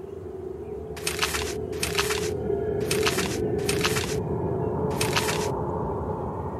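Short whooshing game sound effects play one after another.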